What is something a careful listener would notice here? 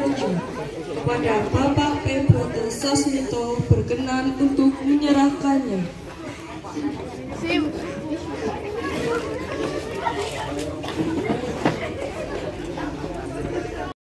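A crowd of teenagers chatters in the background outdoors.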